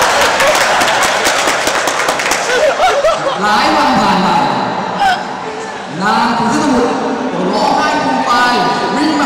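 Voices of children and adults echo in a large hall.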